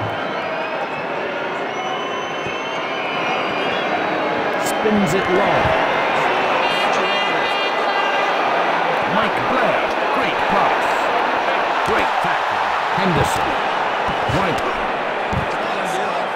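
A large crowd roars and cheers steadily throughout.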